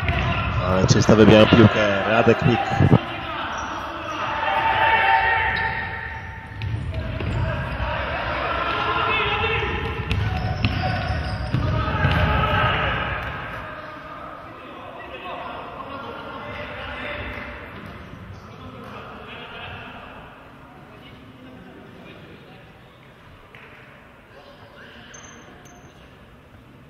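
Shoes squeak on a hard indoor court.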